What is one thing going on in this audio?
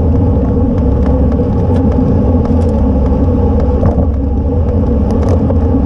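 Wind roars steadily against the microphone.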